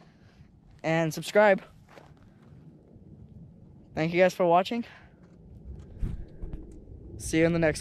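A young man talks close up in short bursts, outdoors.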